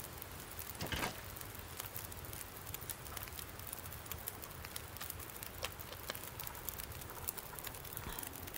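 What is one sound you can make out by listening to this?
A fire crackles softly in a stove.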